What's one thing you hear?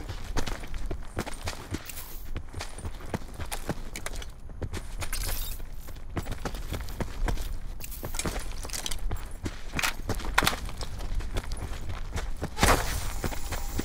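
Footsteps crunch quickly over dry grass and sand.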